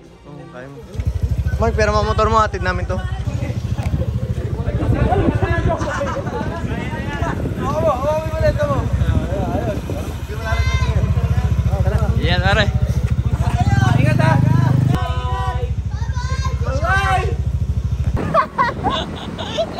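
A motorcycle engine idles and rumbles nearby.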